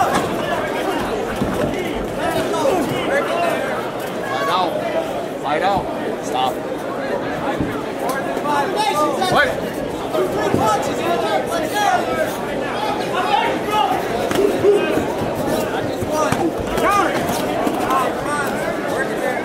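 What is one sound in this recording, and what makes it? Gloved punches and kicks thud against bodies.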